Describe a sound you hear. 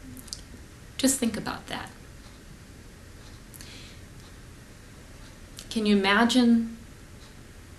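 A woman speaks calmly in short bursts, close by.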